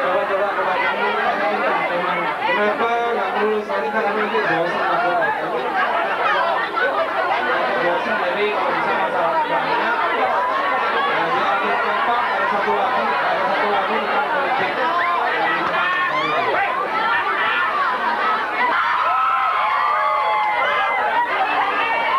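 A large crowd of young people chatters and cheers loudly in an echoing hall.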